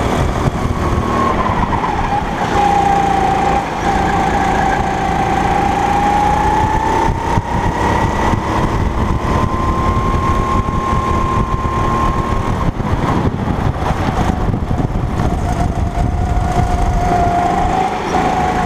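A kart engine whines loudly up close, its pitch rising and falling with speed.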